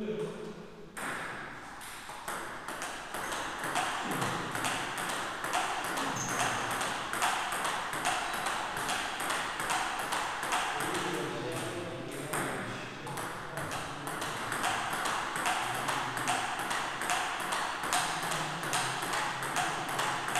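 Table tennis paddles strike a ball back and forth in a quick rally.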